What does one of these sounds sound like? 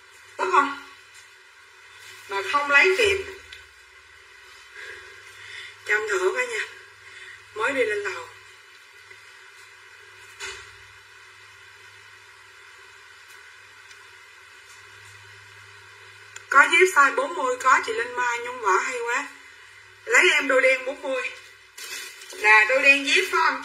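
A middle-aged woman talks close by in bursts, in a calm, chatty voice.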